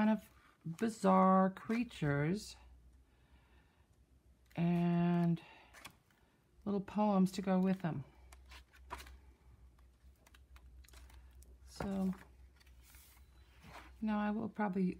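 Book pages rustle and flip as they are turned by hand.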